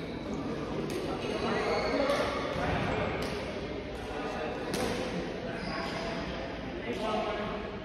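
Men talk casually nearby in an echoing hall.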